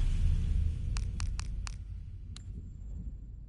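Short electronic clicks sound as a game menu selection moves down and opens.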